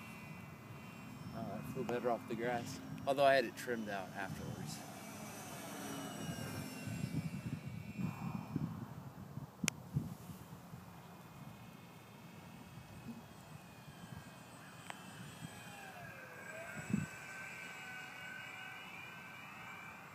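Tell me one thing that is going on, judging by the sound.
A small model plane's engine buzzes overhead, its pitch rising and falling.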